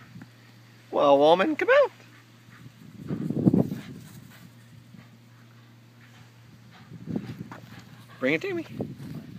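A dog yips and whines in short bursts.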